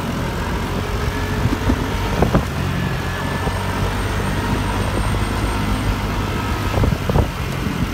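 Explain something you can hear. Traffic rumbles steadily on a busy road.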